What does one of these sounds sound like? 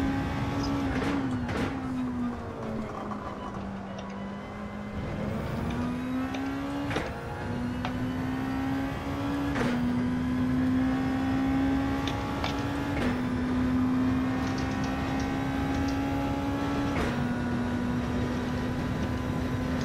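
A racing car engine roars steadily, dropping in pitch as it shifts up through the gears.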